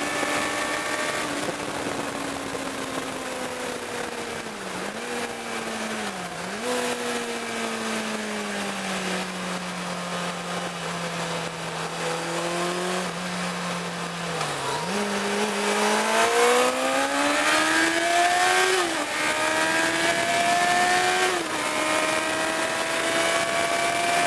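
A car engine hums from inside the car, rising in pitch and dropping as the gears shift.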